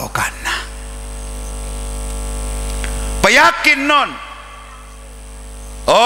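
An elderly man speaks with animation through a microphone and loudspeakers.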